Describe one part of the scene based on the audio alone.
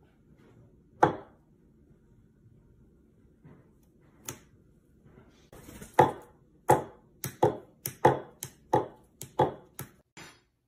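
A metal mallet taps on a hard countertop.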